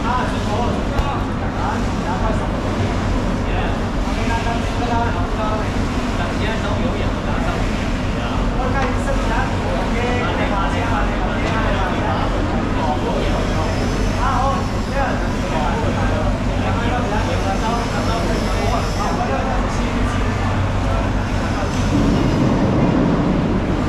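A knife slices wetly through raw fish flesh.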